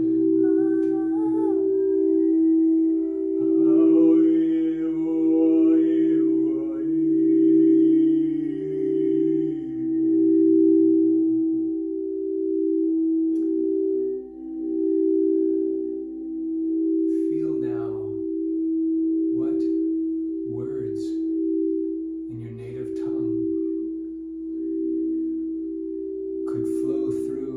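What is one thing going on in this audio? Singing bowls ring with a steady, sustained hum that swells and fades in slow waves.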